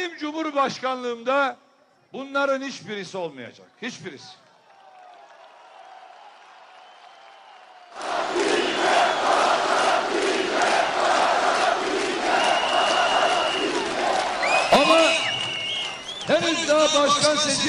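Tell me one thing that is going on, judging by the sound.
A man speaks forcefully through a microphone and loudspeakers outdoors.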